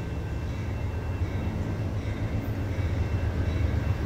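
A diesel passenger train approaches from a distance with a low, growing rumble.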